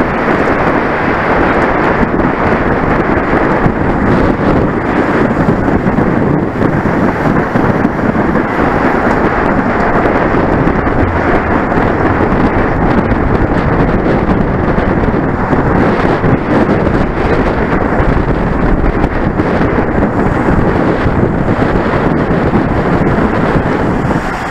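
Wind roars loudly over a microphone, steady and close.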